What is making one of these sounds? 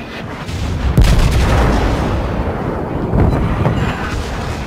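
Shells splash and explode in the water.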